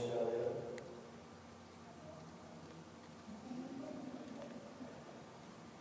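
A crowd of people murmurs and talks quietly in a large echoing hall.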